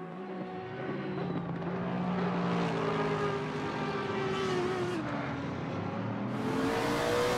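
A racing car engine roars past and fades.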